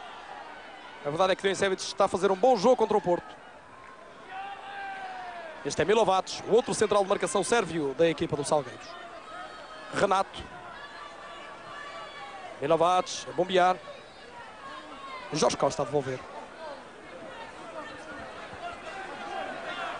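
A large stadium crowd murmurs and chants in the background.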